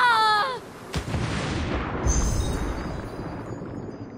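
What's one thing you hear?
A body plunges into water with a splash.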